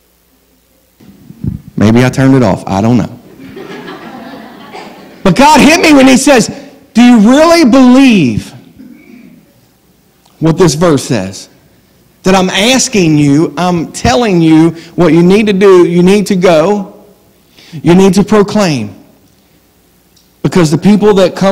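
A middle-aged man speaks with animation through a microphone in a large, echoing room.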